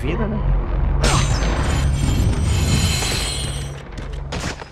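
Magical bursts whoosh and crackle.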